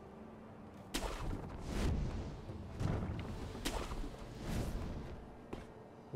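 A grappling rope whooshes through the air in sharp swishes.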